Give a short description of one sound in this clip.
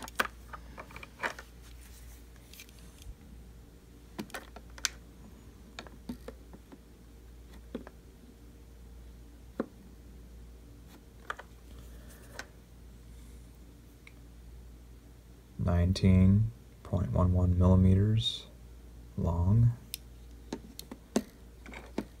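A metal caliper clicks and taps against hard plastic.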